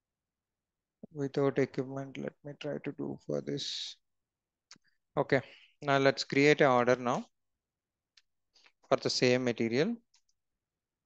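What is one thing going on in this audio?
A young man speaks calmly and close to a headset microphone.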